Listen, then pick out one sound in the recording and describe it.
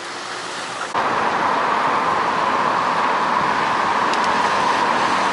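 A trolleybus hums loudly as it drives past close by.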